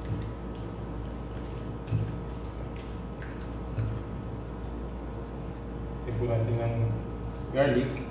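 Hands squish and mix raw meat in a bowl.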